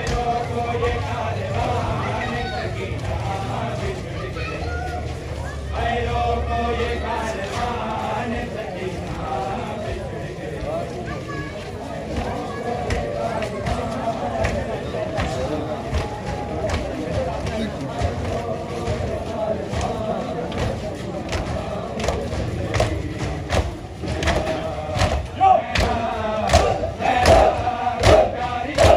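Men beat their chests with their open hands in a steady rhythm.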